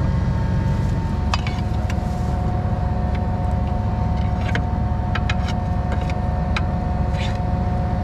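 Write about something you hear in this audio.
Metal parts clink and clank.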